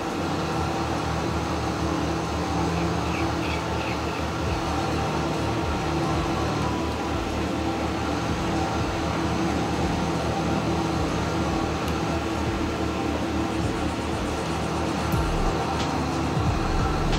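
A tractor engine rumbles steadily as it drives.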